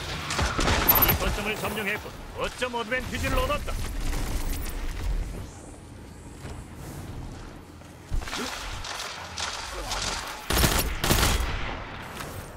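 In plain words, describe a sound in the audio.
Gunshots ring out in sharp bursts.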